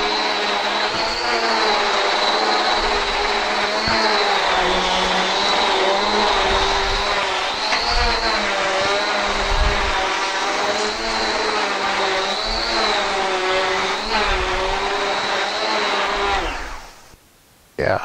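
A vacuum cleaner motor whines steadily up close.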